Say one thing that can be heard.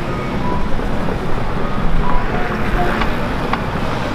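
A motorbike engine rumbles past close by.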